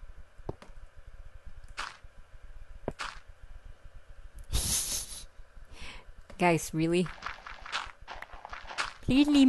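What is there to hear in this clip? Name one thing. Footsteps scrape on stone.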